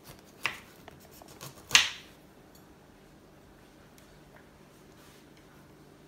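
A knife cuts crisply through a green pepper.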